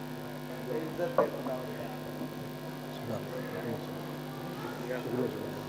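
A man speaks with feeling into a microphone, heard through loudspeakers.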